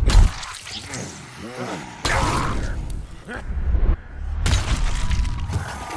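A zombie groans and snarls close by.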